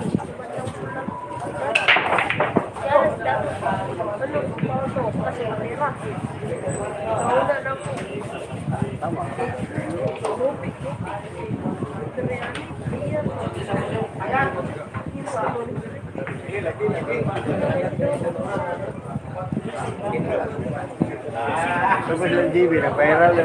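A crowd of men and women chatter nearby, with voices overlapping throughout.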